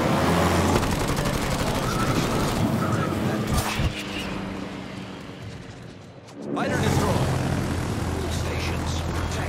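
Propeller aircraft engines drone.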